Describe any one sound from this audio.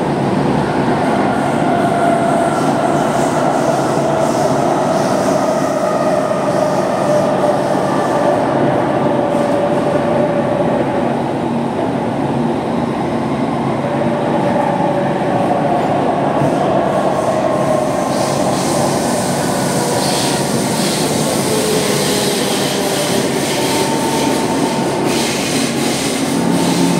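A metro train rumbles and whines steadily along the track.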